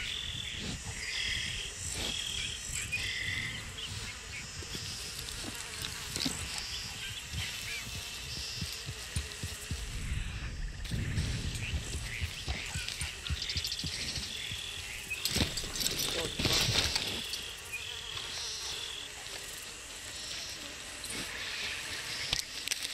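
Birds chirp and whistle repeatedly.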